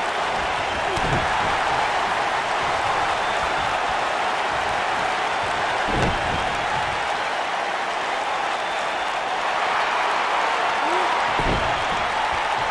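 Heavy bodies thud onto a wrestling ring mat.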